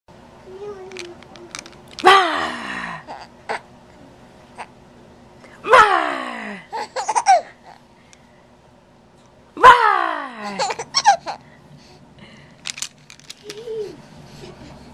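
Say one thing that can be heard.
A baby coos softly close by.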